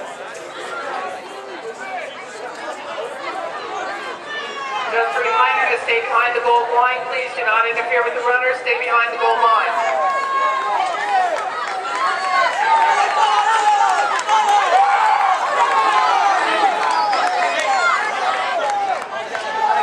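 A small crowd of spectators shouts and cheers loudly, outdoors.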